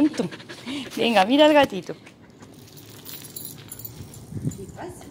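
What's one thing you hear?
A woman talks excitedly nearby.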